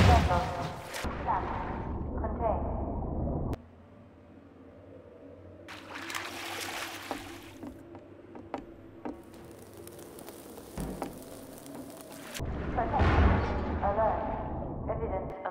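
Water churns and gurgles as something moves underwater.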